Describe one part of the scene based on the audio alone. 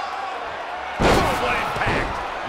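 A wrestler slams down hard onto the ring mat with a loud thud.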